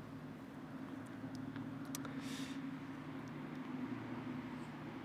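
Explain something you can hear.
A tennis ball bounces on a hard court a few times.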